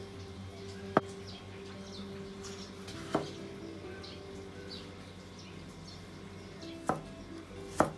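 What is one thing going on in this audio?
A knife slices through a tomato and taps a wooden board.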